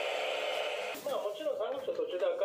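A portable radio picks up a station as the dial is turned.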